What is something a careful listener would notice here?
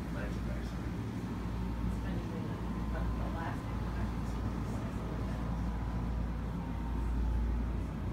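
A ceiling fan whirs softly overhead.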